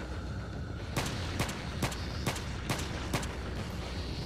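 A handgun fires several sharp shots in quick succession.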